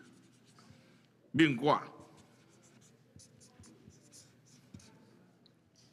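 A marker pen squeaks and scratches on paper.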